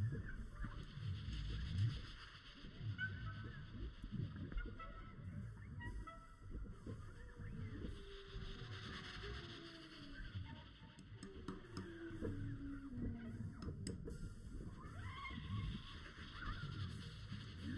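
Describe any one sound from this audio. Trumpets and saxophones play melody lines together.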